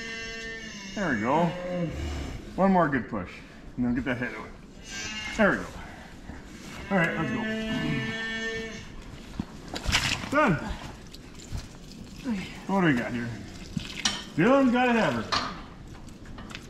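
A cow bellows loudly, again and again.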